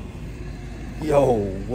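A young man exclaims briefly up close, muffled.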